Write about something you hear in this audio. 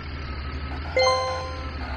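A bright chime rings out once.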